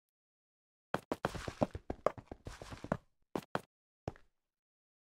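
Stone blocks crack and crumble as they are mined.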